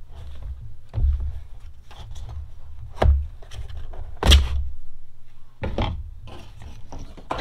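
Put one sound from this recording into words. Plastic parts knock and clatter on a table.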